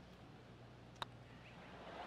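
A golf ball is struck with a soft click.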